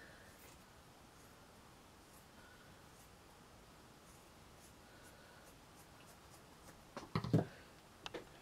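Scissors snip through thick fabric.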